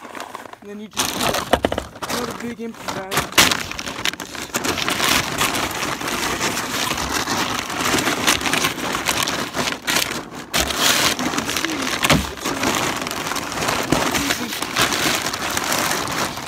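Feed pours out of a sack with a steady rushing hiss.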